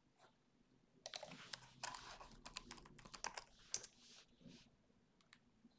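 Keys clatter rapidly on a computer keyboard.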